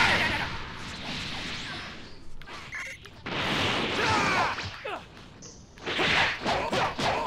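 Energy blasts roar and whoosh in a game fight.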